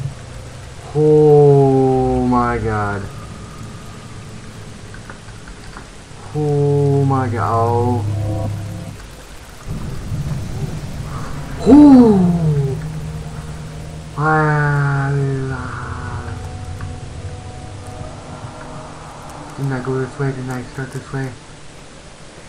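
A young man nearby makes long, drawn-out frightened sounds into a microphone, with his voice sliding in pitch.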